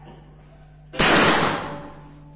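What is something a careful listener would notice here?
An air rifle fires once with a sharp crack.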